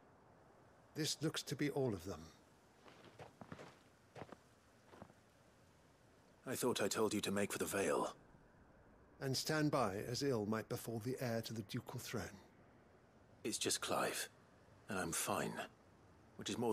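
A young man speaks in a low, calm voice, close by.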